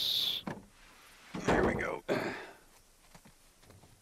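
A wooden plank drops onto a roof with a hollow thud.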